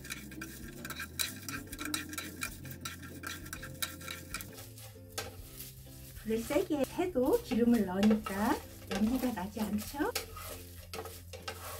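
Utensils scrape and clack against a frying pan.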